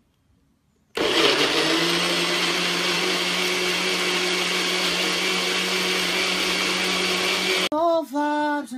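A blender whirs loudly and steadily.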